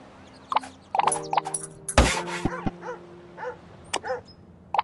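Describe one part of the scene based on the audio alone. Coins jingle and chime in quick bursts.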